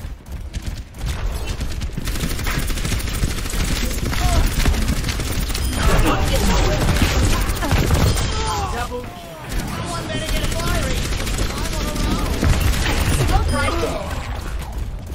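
Explosions boom in a game fight.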